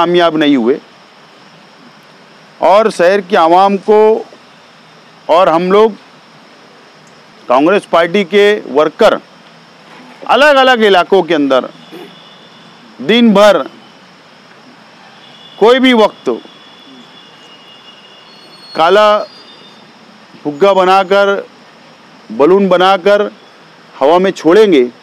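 A man speaks forcefully into a microphone, in short bursts with pauses.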